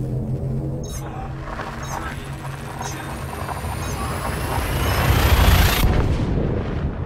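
A rising, roaring whoosh builds to a loud peak and then cuts off.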